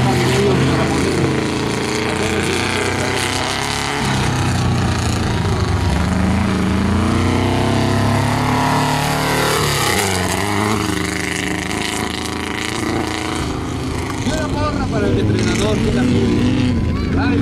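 An air-cooled Beetle-based off-road racer roars past at full throttle on a dirt track.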